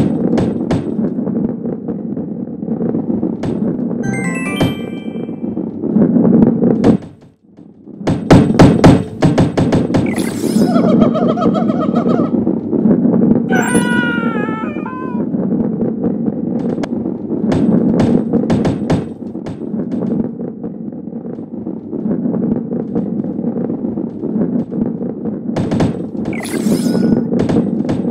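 Game sound effects chime and pop as balls roll along a track.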